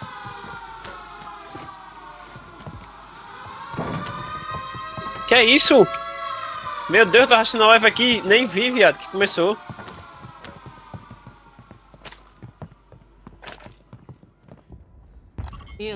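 Footsteps thud softly on wooden floors.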